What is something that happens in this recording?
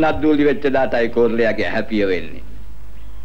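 An elderly man speaks earnestly, close by.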